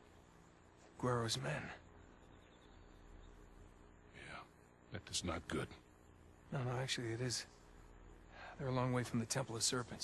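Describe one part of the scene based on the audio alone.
A middle-aged man speaks in short, tense phrases, close by.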